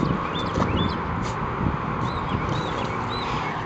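A dog splashes in shallow water.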